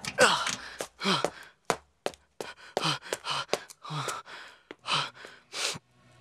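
A young man pants and breathes hard close by.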